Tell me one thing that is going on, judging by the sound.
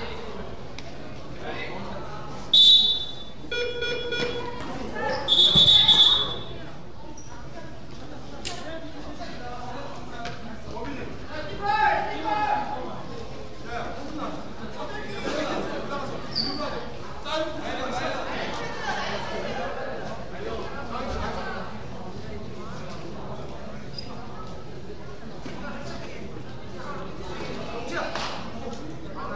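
Spectators and players murmur and call out in the background.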